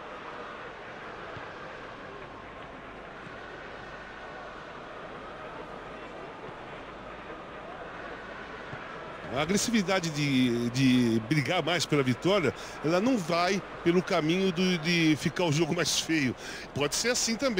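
A stadium crowd murmurs and roars steadily in the distance.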